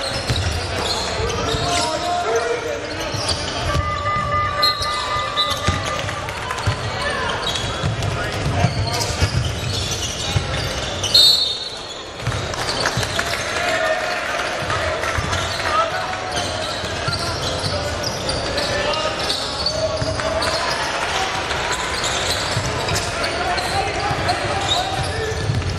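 A crowd murmurs and cheers in the stands.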